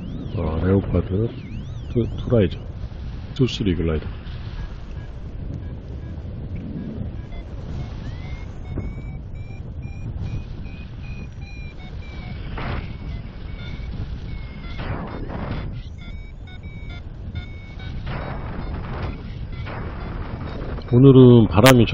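Wind rushes steadily past in the open air.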